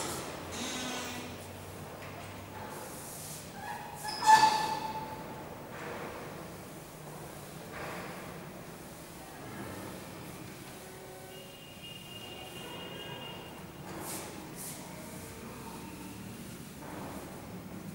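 A man talks calmly in an echoing room.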